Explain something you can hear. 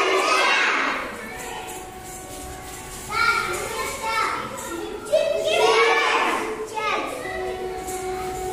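Young children chant loudly together.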